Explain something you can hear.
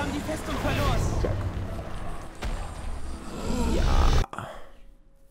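A loud magical blast roars and rumbles.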